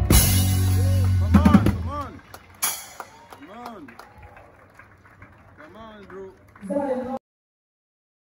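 A drummer strikes drums and cymbals.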